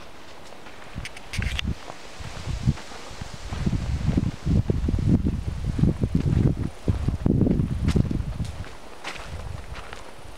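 Footsteps crunch on dry leaves and twigs outdoors.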